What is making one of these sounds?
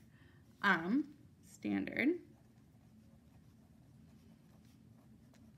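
A felt-tip marker scratches softly across paper.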